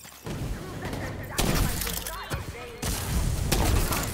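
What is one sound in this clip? Gunfire crackles.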